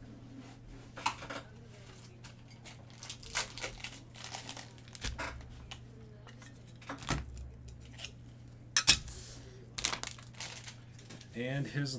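Cards and packaging rustle and click under a man's hands.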